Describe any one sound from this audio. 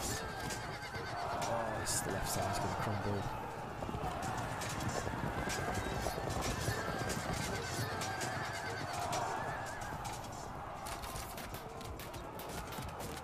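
Soldiers clash and shout in a steady battle din.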